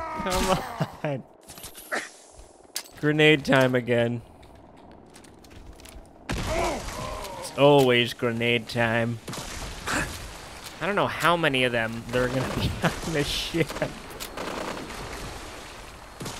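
A gun fires with sharp bursts.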